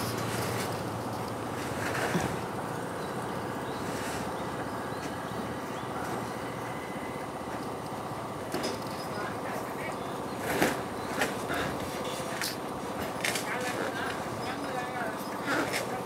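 A large plastic tank scrapes and thumps as it slides across a truck bed.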